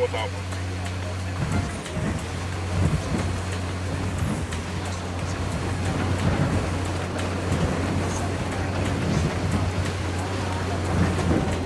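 Tyres and the truck body bump and rattle over rough ground.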